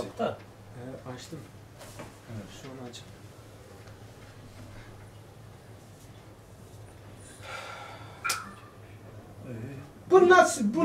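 An elderly man speaks calmly, as if teaching.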